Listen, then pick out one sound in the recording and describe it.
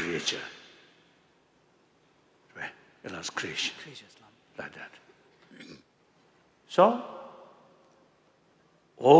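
An elderly man speaks slowly through a microphone in a large echoing hall.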